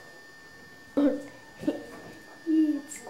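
A girl speaks softly into a telephone handset.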